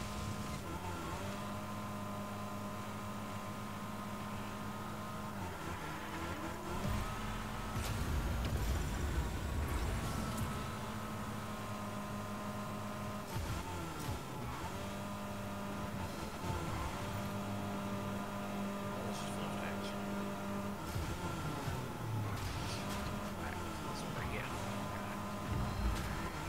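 A racing car engine hums steadily and changes pitch as it speeds up and slows down.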